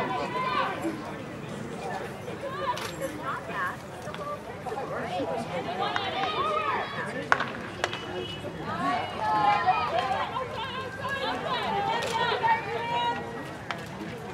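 Young women shout and call out across an outdoor field.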